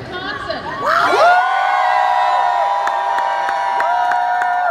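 A crowd sings loudly together.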